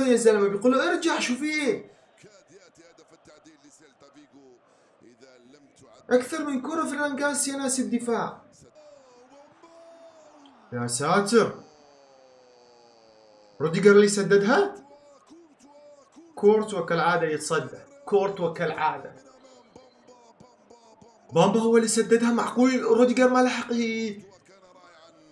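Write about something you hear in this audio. A young man speaks with animation into a nearby microphone, in bursts with pauses.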